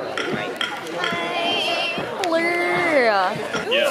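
A young woman speaks excitedly and laughs close by.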